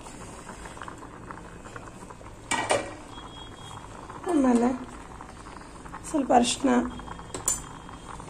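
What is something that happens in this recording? Water bubbles and simmers in a pot.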